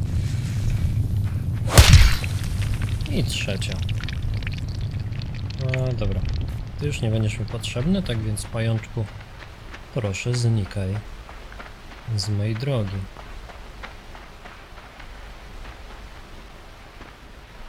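Small footsteps patter softly on soft ground.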